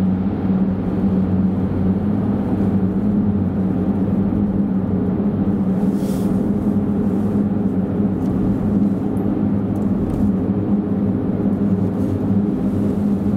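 A car engine hums steadily while driving through a tunnel.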